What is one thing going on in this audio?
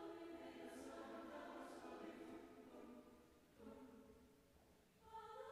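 A choir of young voices sings together in a large echoing hall.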